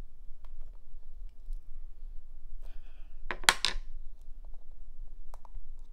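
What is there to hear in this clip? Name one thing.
Scissors snip at a cockle shell.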